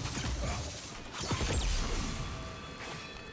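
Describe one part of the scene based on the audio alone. An explosion bursts with crackling sparks.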